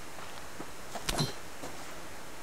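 Leaves rustle sharply as something brushes past them.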